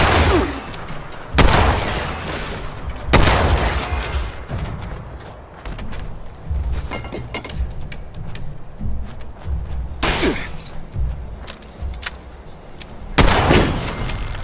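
Gunshots crack loudly, each followed by a short echo.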